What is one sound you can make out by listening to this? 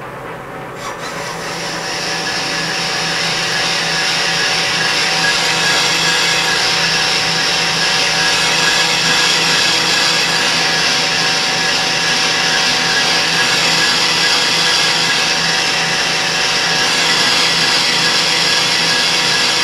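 A cutting tool hisses and scrapes against spinning metal, growing louder.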